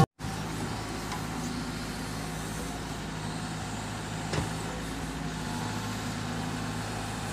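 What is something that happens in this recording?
An excavator's diesel engine rumbles steadily up close.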